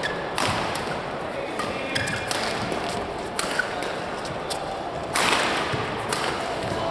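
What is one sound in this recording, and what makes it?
Rackets strike a shuttlecock in quick exchanges, echoing in a large hall.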